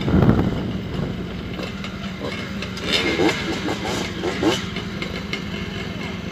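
Dirt bike engines idle nearby.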